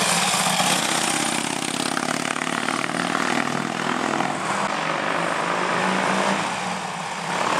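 A motorcycle engine putters nearby, then fades into the distance.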